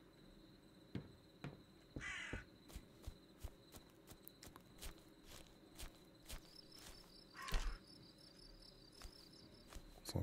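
Footsteps crunch through grass at a steady pace.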